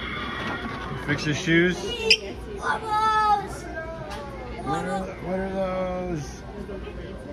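A young boy talks excitedly, close by.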